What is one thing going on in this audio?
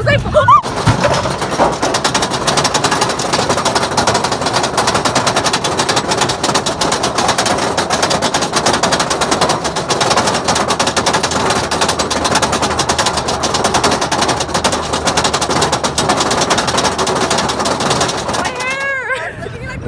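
A roller coaster train clatters and rattles loudly along its track.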